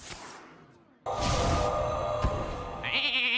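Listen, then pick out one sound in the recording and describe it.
A magic spell bursts with a loud shimmering whoosh.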